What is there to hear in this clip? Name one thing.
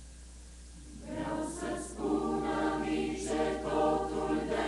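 An electric keyboard plays along.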